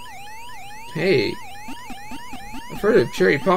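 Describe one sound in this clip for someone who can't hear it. Short electronic game blips sound as points are scored.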